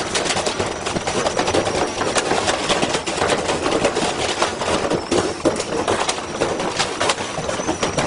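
A washing machine drum spins violently, banging and rattling loudly.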